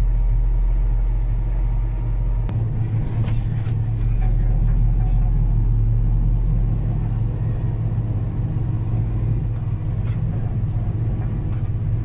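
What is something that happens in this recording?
A tractor's diesel engine drones.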